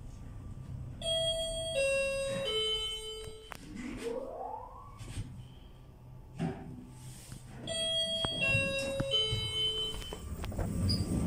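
An electronic chime plays a few descending notes.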